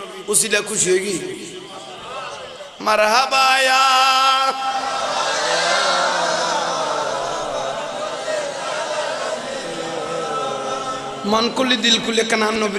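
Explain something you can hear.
A man speaks and then chants in a long, drawn-out melody through a microphone, with a slight echo.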